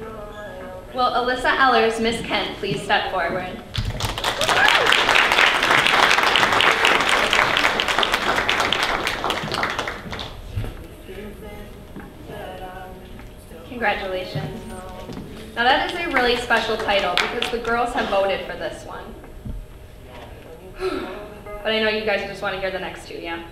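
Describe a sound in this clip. A woman speaks through a microphone, announcing.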